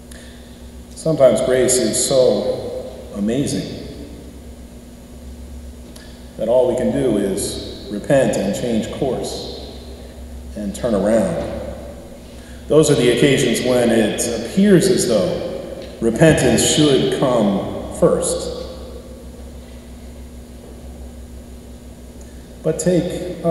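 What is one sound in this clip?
A middle-aged man speaks calmly into a microphone in an echoing hall.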